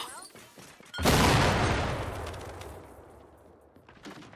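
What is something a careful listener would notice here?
A loud blast booms nearby and slowly rumbles away.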